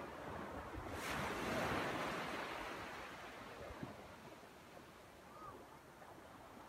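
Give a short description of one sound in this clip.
Gentle waves wash onto the shore and fade back.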